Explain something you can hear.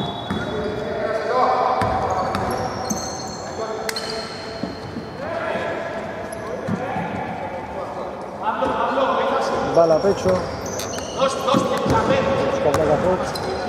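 A man shouts instructions loudly from the sideline.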